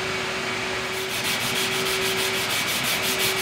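Sandpaper rubs quickly back and forth on wood.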